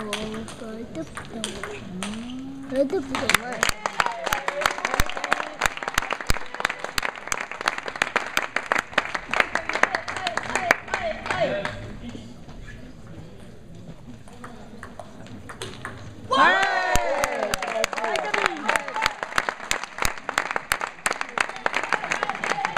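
Table tennis balls click rapidly against bats and tables in a large echoing hall.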